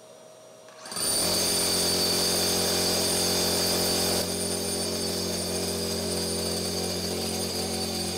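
A shop vacuum whirs steadily.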